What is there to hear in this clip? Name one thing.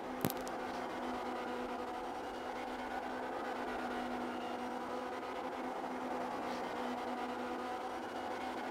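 A racing car engine drones at high revs.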